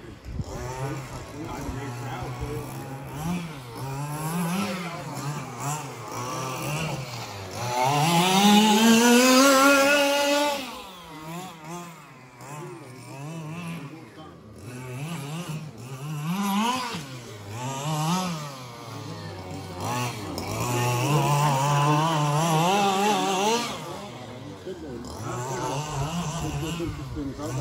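A small model car engine buzzes loudly, revving up and down as the car races.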